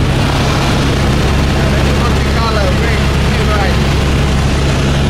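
A man speaks close by, raising his voice over the engine noise.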